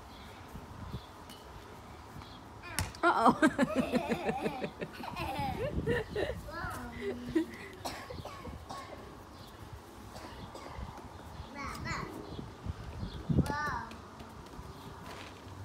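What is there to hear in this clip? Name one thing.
A ball thuds as it is kicked and bounces on grass.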